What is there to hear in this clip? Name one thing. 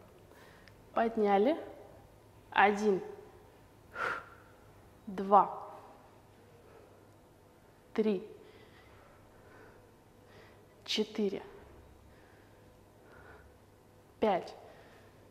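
A woman speaks in short, lively bursts close to the microphone.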